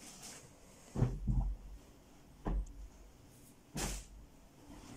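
Fabric rustles and thumps softly as it is laid down.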